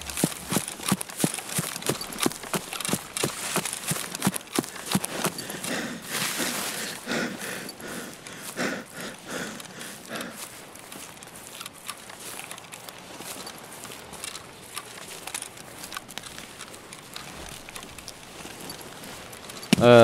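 Footsteps swish and rustle through tall grass at a steady walking pace.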